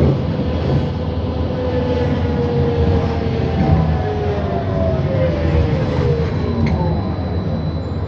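The bus's engine drops in pitch as the bus slows to a stop in traffic.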